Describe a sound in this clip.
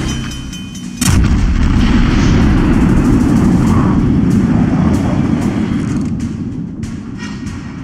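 Heavy guns fire a loud booming salvo that rumbles on and slowly fades.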